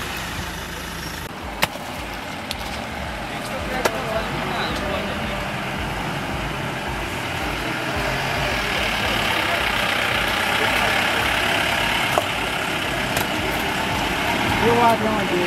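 A vehicle engine revs as it pushes through deep mud.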